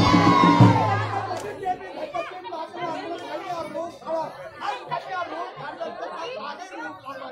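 A crowd of women and men chatter loudly outdoors.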